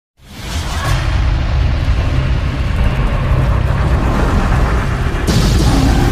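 Flames roar with a deep, steady rumble.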